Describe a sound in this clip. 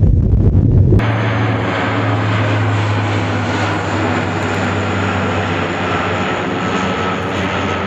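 A propeller plane drones overhead.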